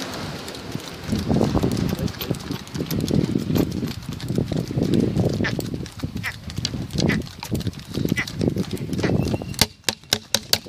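Wooden cart wheels rumble over the road.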